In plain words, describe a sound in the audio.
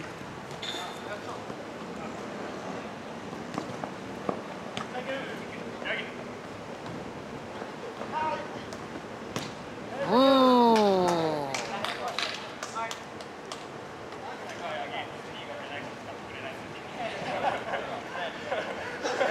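A ball is kicked with sharp thuds outdoors.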